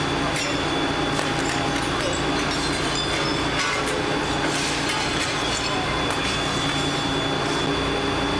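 Glass shatters and clatters as a window is broken out.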